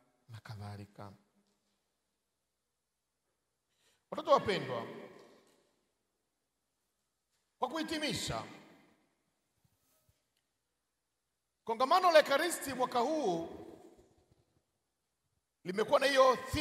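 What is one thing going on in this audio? A man speaks slowly and forcefully into a microphone, heard through loudspeakers, pausing between phrases.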